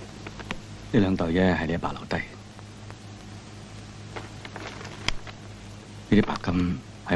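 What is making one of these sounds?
A man speaks calmly and gently.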